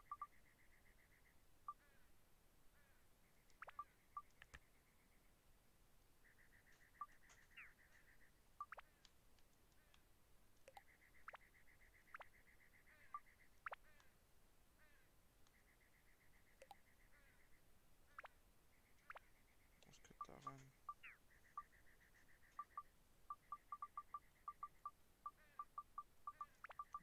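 Short electronic menu blips sound again and again.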